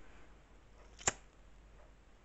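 A disposable lighter is flicked and clicks.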